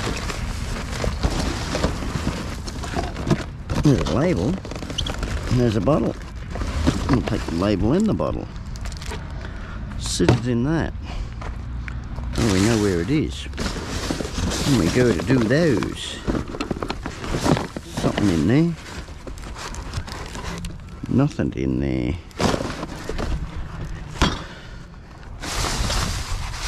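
Cardboard and paper rustle as hands rummage through rubbish.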